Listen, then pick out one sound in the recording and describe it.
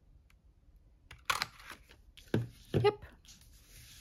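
A paper punch snaps shut with a sharp click.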